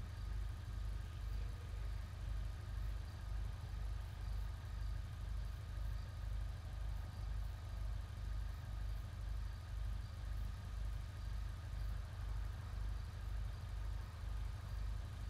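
A car engine idles with a low, steady, pulsing throb.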